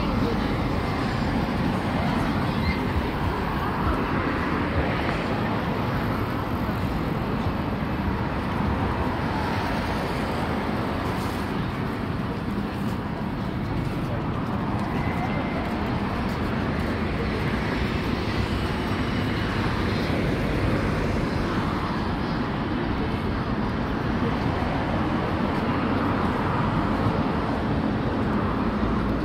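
Busy city street noise with a murmuring crowd fills the air outdoors.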